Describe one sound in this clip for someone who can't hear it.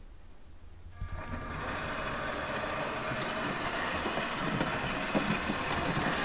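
Small wheels click over rail joints and points.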